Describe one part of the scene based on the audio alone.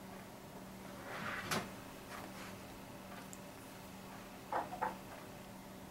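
A small metal device clicks and knocks as it is handled close by.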